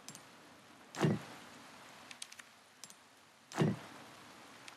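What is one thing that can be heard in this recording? A heavy stone piece clunks into place against wood.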